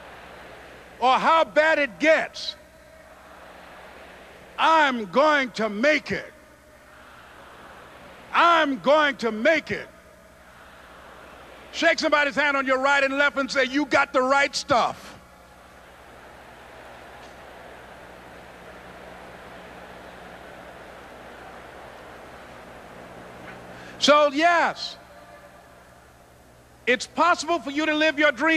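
A man speaks forcefully into a microphone through loudspeakers, in short emphatic bursts.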